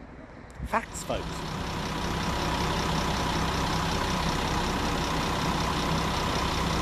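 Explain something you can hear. A train idles with a steady low hum.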